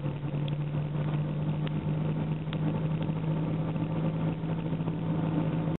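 A car engine hums steadily while driving.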